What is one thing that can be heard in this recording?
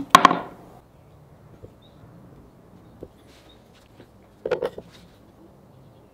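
A pen scratches on wood.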